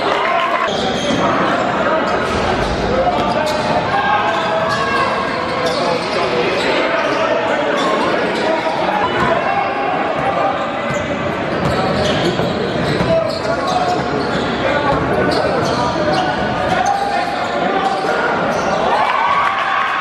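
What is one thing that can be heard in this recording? A crowd cheers and shouts in an echoing indoor hall.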